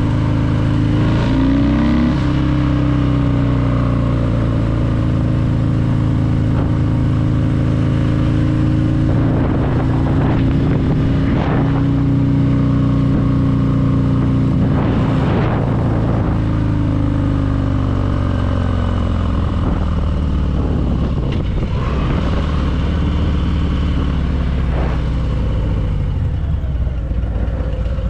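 A motorcycle engine rumbles steadily up close as it rides along.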